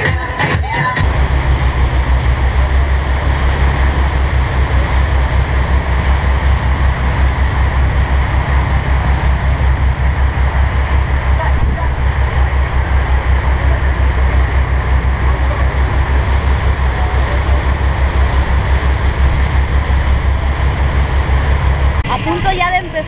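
A boat engine drones steadily with a low rumble.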